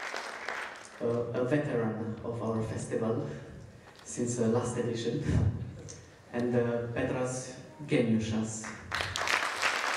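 A man speaks through a microphone over loudspeakers in a large echoing hall.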